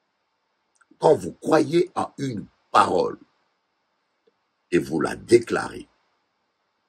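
A middle-aged man speaks calmly and clearly into a close microphone.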